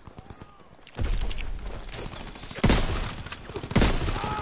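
Loud explosions boom close by.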